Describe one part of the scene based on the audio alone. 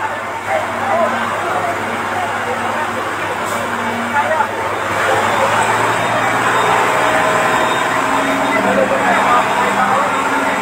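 A vehicle engine idles nearby with a steady hum.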